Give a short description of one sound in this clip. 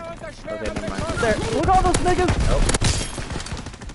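A silenced gun fires in quick, muffled shots.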